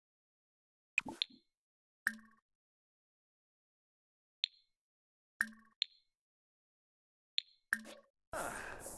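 Short soft chimes sound as menu options pop up.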